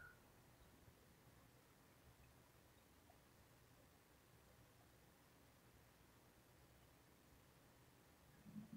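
A cable rustles and clicks softly in someone's hands.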